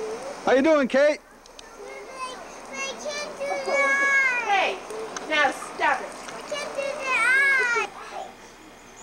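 A young child talks and sings excitedly nearby.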